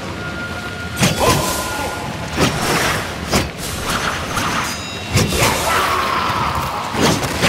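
Swords clash and ring sharply again and again.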